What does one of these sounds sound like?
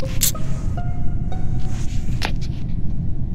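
A game alarm sounds a short run of rising electronic tones.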